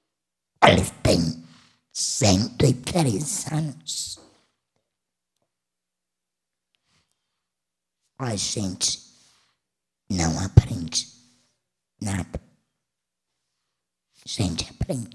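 A woman speaks calmly into a microphone, in pauses.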